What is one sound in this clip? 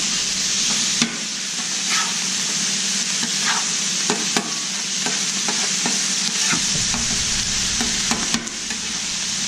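A metal spatula scrapes and clacks against a griddle.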